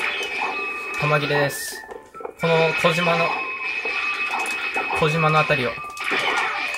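Short electronic bleeps and chimes ring out from time to time.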